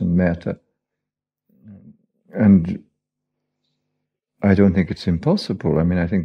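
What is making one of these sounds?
A man speaks calmly in short phrases, close to a microphone.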